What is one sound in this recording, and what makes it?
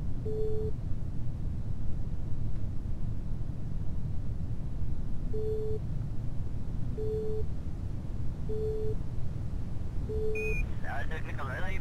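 Air rushes past a falling capsule with a steady low rumble.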